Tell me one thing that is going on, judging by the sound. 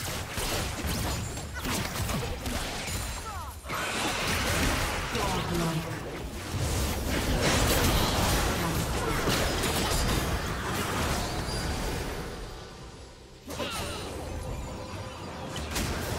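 Magic blasts whoosh and crackle in a fast, noisy battle.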